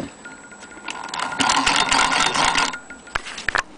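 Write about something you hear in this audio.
A sewing machine rattles rapidly in a short burst.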